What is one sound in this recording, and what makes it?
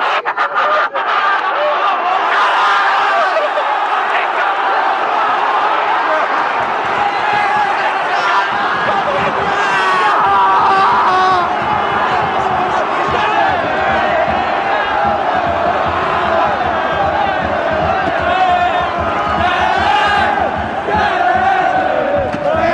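A large crowd of fans cheers and shouts loudly, close by, in a big echoing stadium.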